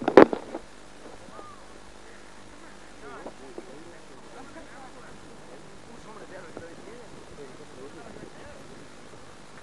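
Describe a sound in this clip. A man speaks calmly at a distance outdoors.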